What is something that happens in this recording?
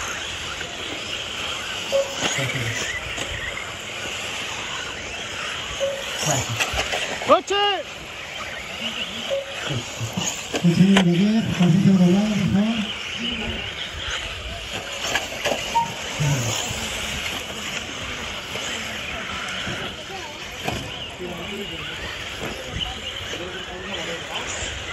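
Small electric racing cars whine as they speed around a dirt track.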